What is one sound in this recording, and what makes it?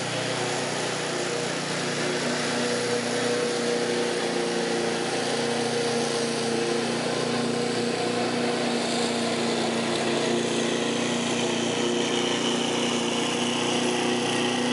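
A lawn mower engine drones steadily, growing closer.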